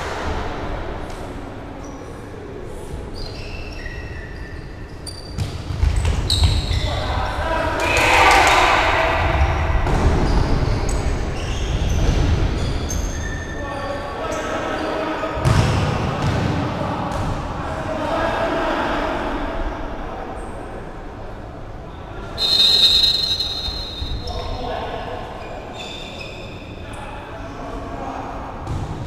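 Players' shoes squeak on a hard floor in a large echoing hall.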